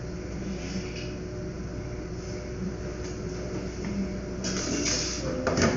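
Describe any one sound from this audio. An anaesthesia machine hums steadily.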